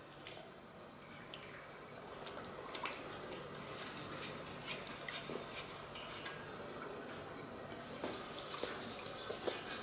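A fish is rubbed and slapped in liquid in a metal bowl.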